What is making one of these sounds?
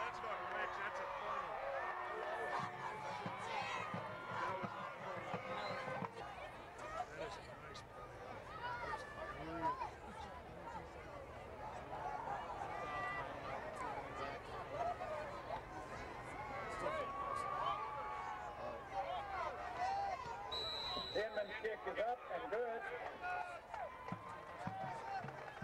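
A crowd of spectators talks and calls out from the stands, heard from a distance outdoors.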